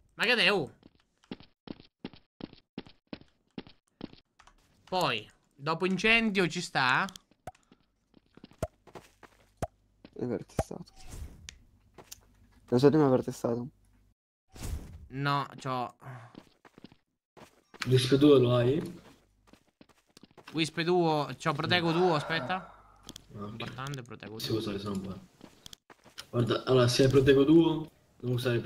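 A man talks casually and with animation into a close microphone.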